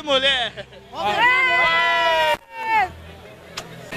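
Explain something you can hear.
A woman exclaims loudly and cheerfully, close by.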